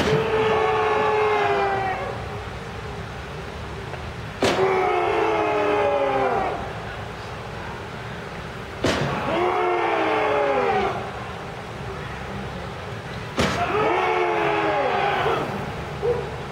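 A group of men and women sing loud chanted phrases that slide down in pitch.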